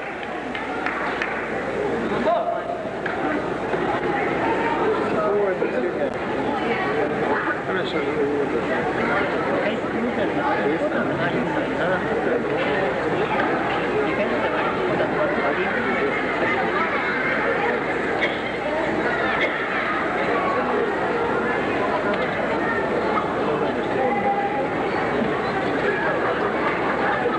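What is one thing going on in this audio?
A large crowd murmurs and chatters throughout in a big echoing hall.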